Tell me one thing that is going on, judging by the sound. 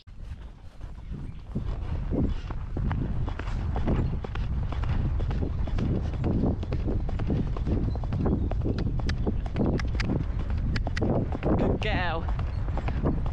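Wind buffets loudly as the horse moves faster across open ground.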